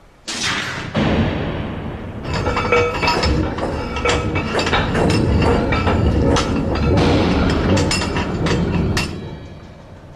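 Clockwork gears whir and clatter loudly.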